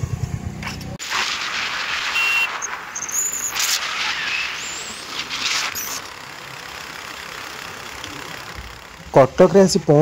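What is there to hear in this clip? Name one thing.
Wind roars loudly past the rider.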